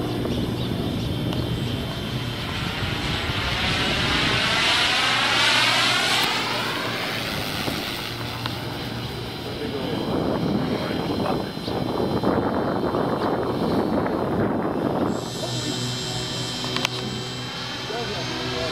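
A propeller plane engine drones overhead, its pitch sweeping as it passes by.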